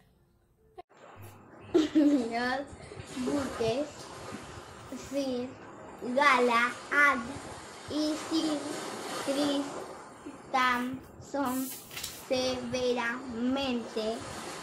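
A young girl speaks close by, reading out with animation.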